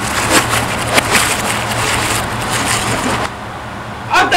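Plastic packaging crinkles and rustles in a young man's hands.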